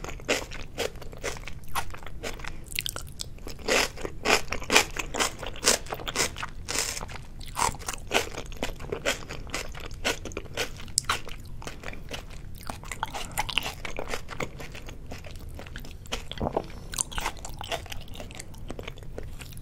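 Chopsticks click against a plate.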